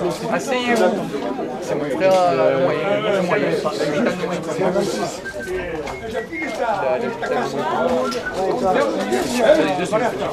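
A man speaks in a lively voice.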